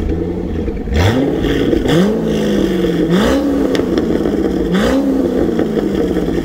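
A sports car engine revs sharply several times, roaring through its exhaust.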